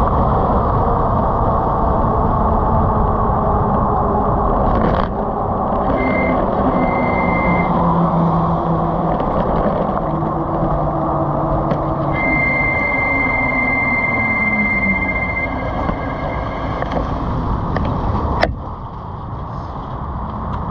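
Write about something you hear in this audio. Wind rushes and buffets loudly against the microphone.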